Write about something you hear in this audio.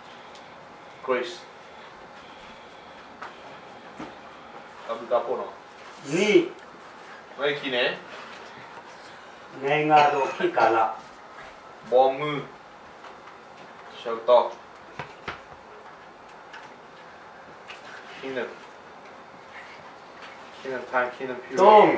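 A man speaks calmly in short phrases with pauses.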